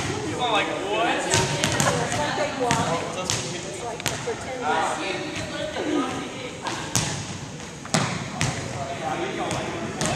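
Young men talk and call out in a large echoing gym.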